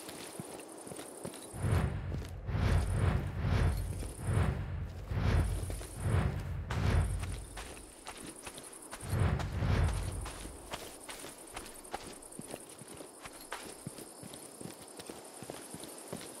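Footsteps rustle through tall grass and brush.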